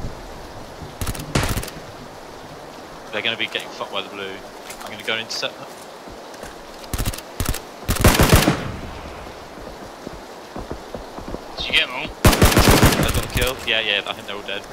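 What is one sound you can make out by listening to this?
Gunshots crack loudly in short bursts.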